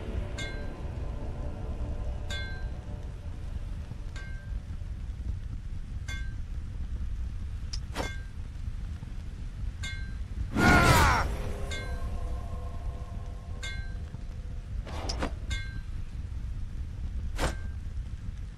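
Game menu chimes sound in short bursts.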